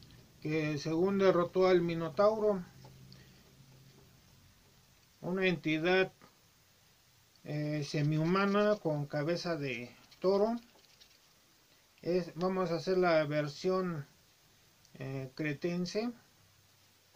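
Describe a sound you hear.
An elderly man speaks calmly and close by, in short phrases with pauses.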